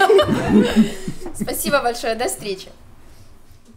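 A young woman speaks with animation into a microphone, close by.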